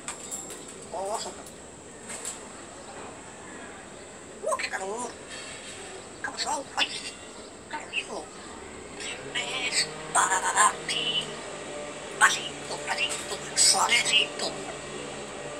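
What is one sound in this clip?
An African grey parrot whistles and squawks.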